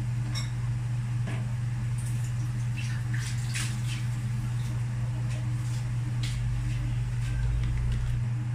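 Dishes clink and knock against a metal sink.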